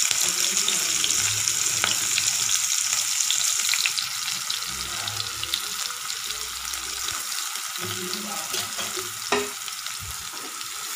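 Onions sizzle and crackle steadily in hot oil.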